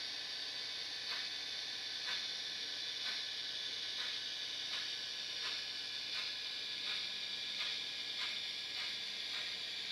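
A small model train rolls along the track with light, regular clicking.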